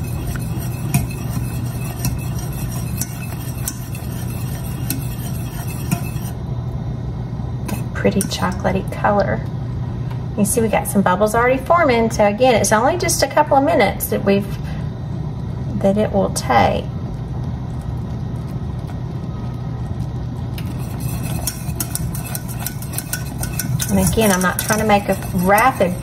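A metal whisk scrapes and clinks against a steel pot.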